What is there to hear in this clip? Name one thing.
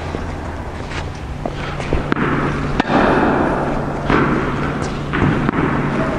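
A tennis racket hits a ball with sharp pops.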